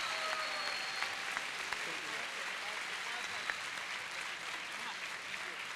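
A crowd claps and cheers loudly in a large hall.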